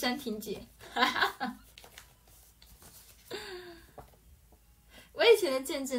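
Paper rustles in a young woman's hands.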